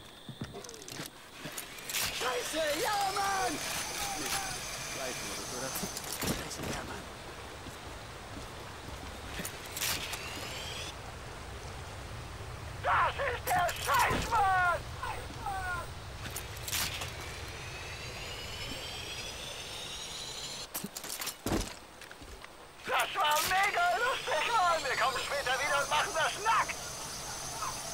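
A pulley whirs along a cable, its whine rising in pitch as it speeds up.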